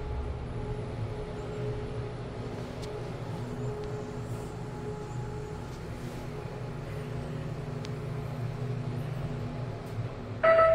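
An elevator car hums and rumbles as it travels.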